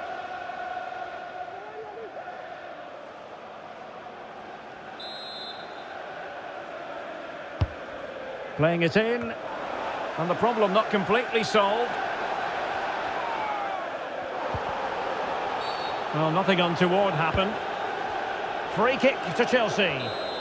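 A stadium crowd murmurs and roars in the background.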